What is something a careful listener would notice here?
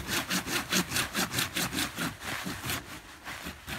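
A hand saw cuts rapidly through wood.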